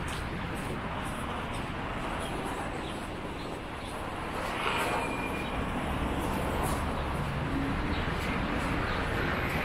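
A parked bus engine idles nearby with a low steady rumble.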